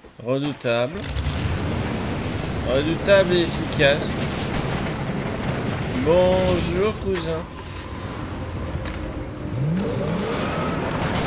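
A buggy engine rumbles steadily as it drives.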